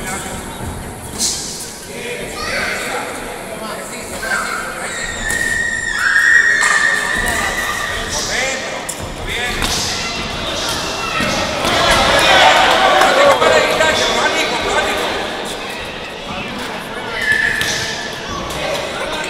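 A crowd murmurs and shouts in a large echoing hall.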